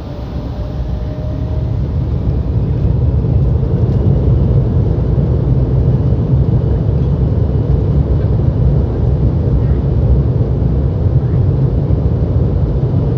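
A jet airliner's engines rumble loudly as the plane taxis and gathers speed, growing louder.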